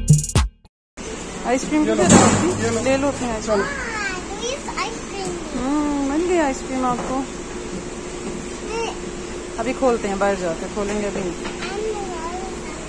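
A young girl talks softly close by.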